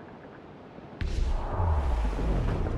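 Strong wind roars and flaps loudly through a ship's sails.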